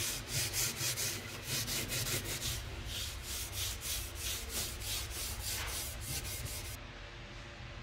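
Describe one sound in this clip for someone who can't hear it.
Steel wool rubs rhythmically back and forth along a wooden handle.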